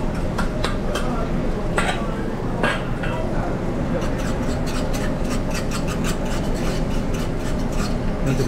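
Eggs sizzle in hot pans.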